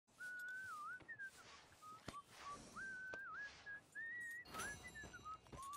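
A horse's hooves thud slowly on soft ground.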